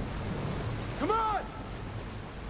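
An ape lets out a loud, shrill shout.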